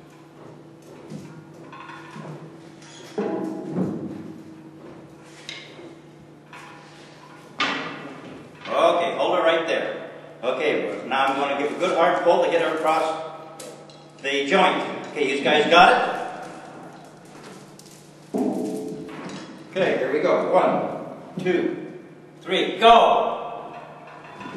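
Several men talk to one another nearby in an echoing room.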